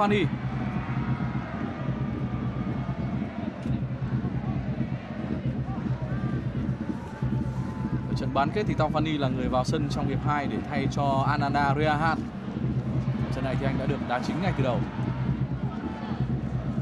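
A large stadium crowd chants and cheers steadily.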